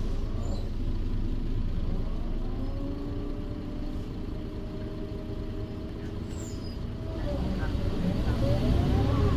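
A bus engine hums and whines steadily, rising in pitch as the bus speeds up.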